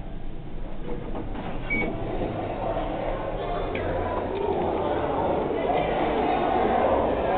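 Many people chatter in a large, echoing hall.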